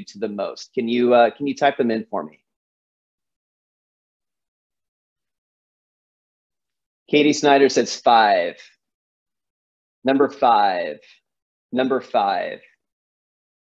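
A young man speaks calmly over an online call, in short phrases with pauses.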